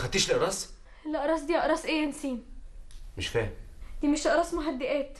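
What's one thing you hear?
A young woman speaks in a tearful, anguished voice nearby.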